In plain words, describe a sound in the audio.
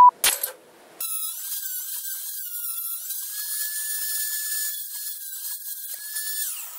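A small rotary tool whines steadily as it grinds metal.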